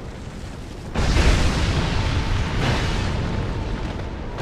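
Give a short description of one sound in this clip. Fire bursts with a loud roaring whoosh.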